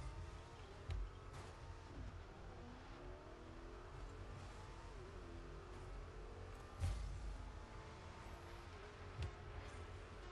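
A ball is struck with sharp thuds.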